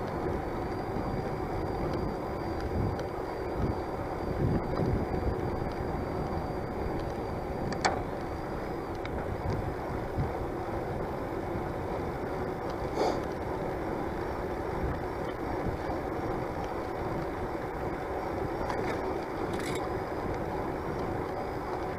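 Bicycle tyres hum on a paved path.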